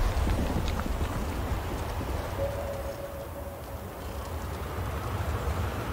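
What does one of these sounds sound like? Wind rushes steadily.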